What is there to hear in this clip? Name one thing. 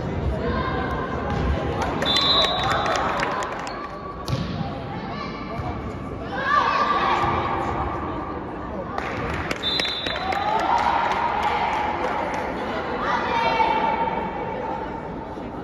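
Girls shout to each other in a large echoing hall.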